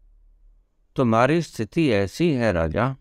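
An elderly man speaks calmly and close to the microphone.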